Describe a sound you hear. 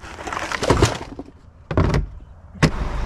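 A plastic trash can lid clunks.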